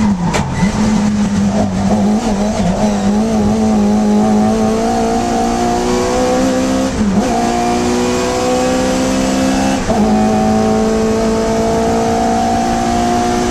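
The small four-cylinder engine of a historic saloon race car roars at full throttle from inside the car, rising in pitch and dropping at each gear change.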